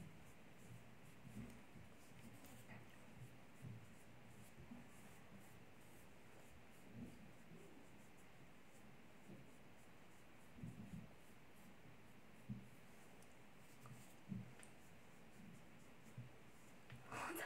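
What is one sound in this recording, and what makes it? A makeup sponge pats softly against skin.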